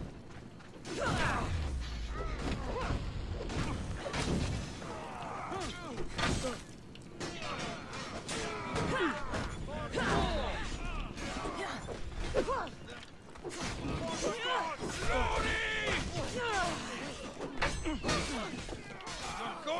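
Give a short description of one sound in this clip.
Blades clash and strike repeatedly in a fight.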